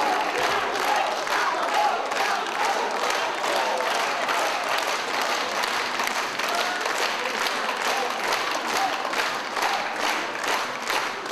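A crowd claps hands in rhythm.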